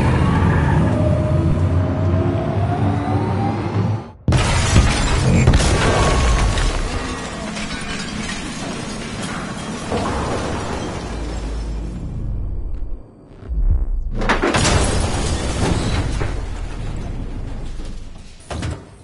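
A heavy truck engine roars.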